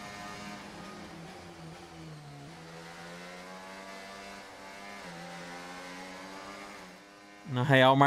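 A racing car engine whines steadily, shifting up and down in pitch.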